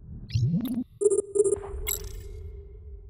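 A game menu beeps softly as options are clicked.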